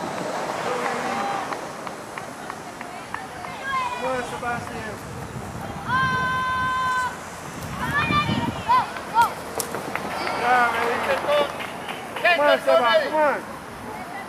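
A soccer ball thuds as it is kicked on grass.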